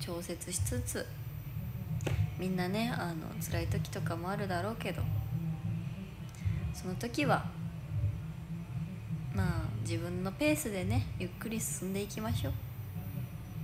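A young woman speaks softly and playfully close by.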